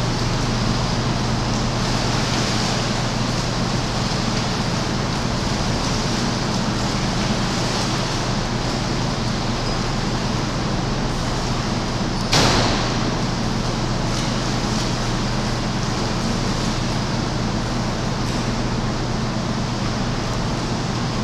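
A swimmer's kicking feet splash in the water.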